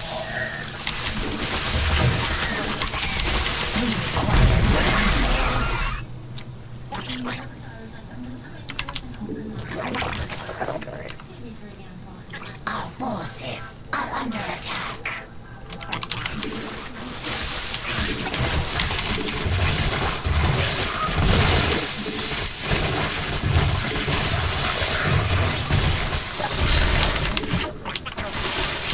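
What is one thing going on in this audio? Game battle sounds of clashing units and blasts play throughout.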